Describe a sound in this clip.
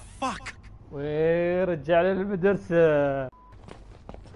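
A young man laughs aloud.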